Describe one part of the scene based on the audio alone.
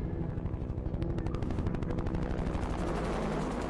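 A helicopter's rotor blades thump rapidly and steadily overhead.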